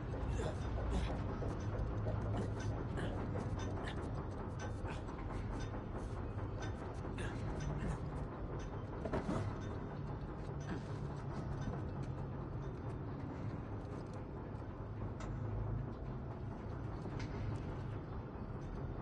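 Large gears turn with a steady low rumble and clicking teeth.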